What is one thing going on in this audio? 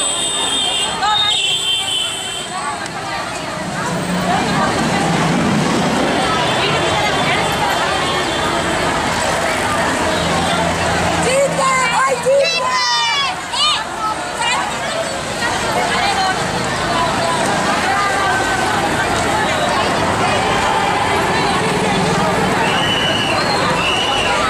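A large crowd of women chants and shouts loudly outdoors.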